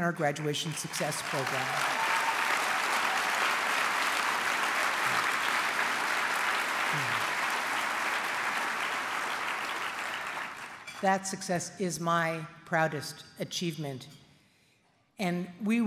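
A middle-aged woman speaks calmly into a microphone in a large hall.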